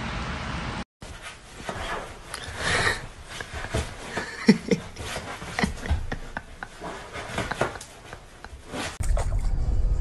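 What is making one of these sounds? A dog's paws scrabble on a couch cushion.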